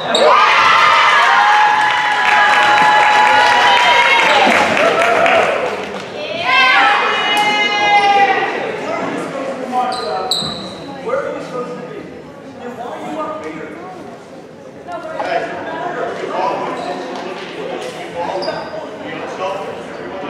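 A crowd in a large echoing gym cheers and shouts loudly.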